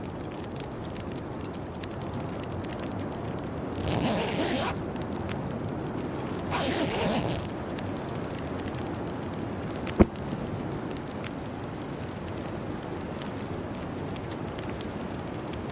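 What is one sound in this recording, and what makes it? A campfire crackles and hisses.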